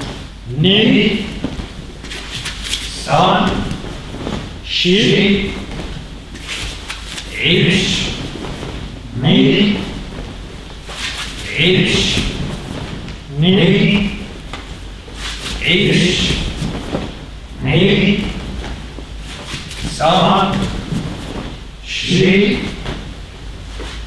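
Several people roll and thump onto mats in a regular rhythm, echoing in a large hall.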